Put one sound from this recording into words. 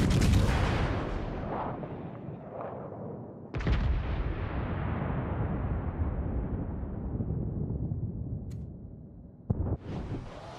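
Shells explode with loud blasts that rumble away.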